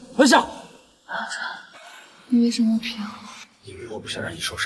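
A young woman speaks tearfully and close by.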